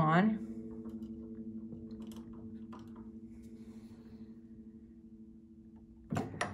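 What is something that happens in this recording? A piano note rings out with a steady, slowly fading tone.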